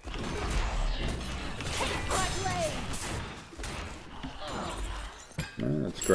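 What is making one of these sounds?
Magic spells whoosh and hum during a fight in a game.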